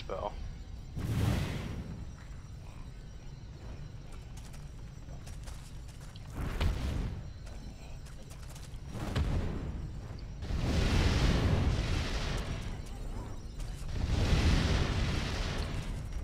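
Fire bursts with a loud whooshing roar, again and again.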